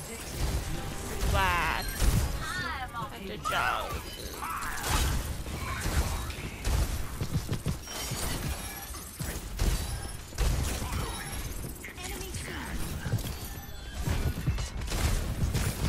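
A game weapon fires energy blasts in quick bursts.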